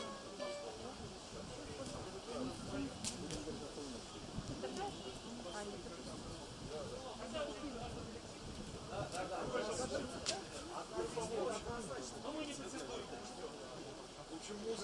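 An acoustic guitar strums outdoors through loudspeakers.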